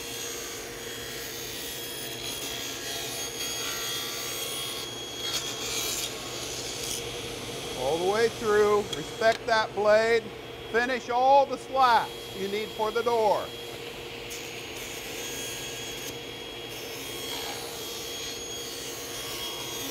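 A saw blade cuts through a wooden board.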